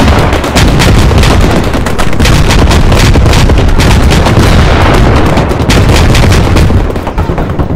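Rockets launch with loud whooshes.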